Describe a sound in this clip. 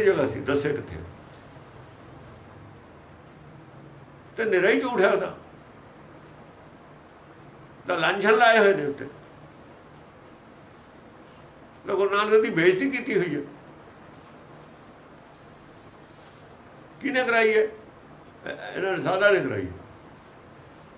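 An elderly man speaks calmly in short phrases, close by, with pauses between them.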